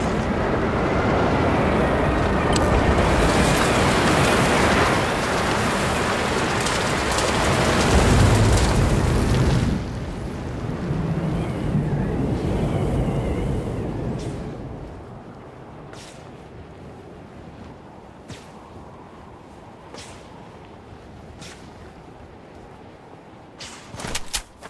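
Wind rushes loudly past during a fast skydive, then eases to a soft whoosh as the fall slows.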